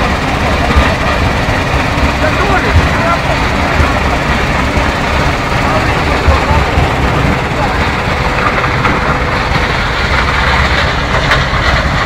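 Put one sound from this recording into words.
Vibrating screening machines rumble and rattle loudly and steadily.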